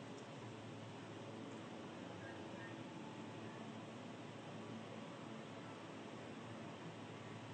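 A woman speaks slowly and softly over an online call.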